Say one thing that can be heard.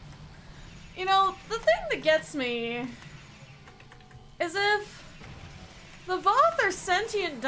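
A young woman speaks animatedly into a close microphone.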